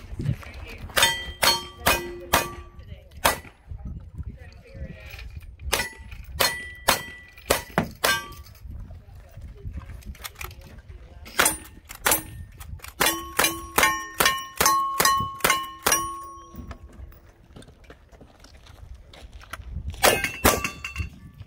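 Gunshots crack outdoors in quick series.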